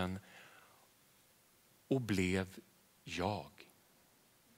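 A man speaks calmly through a headset microphone.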